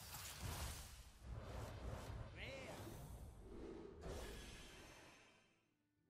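Magical whooshes and shimmering chimes ring out as playing cards flip over.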